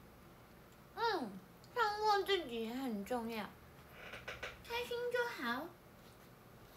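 A young woman speaks close to the microphone in a high, playful voice.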